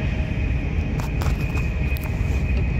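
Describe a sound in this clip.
A train's wheels click and rattle over rail joints.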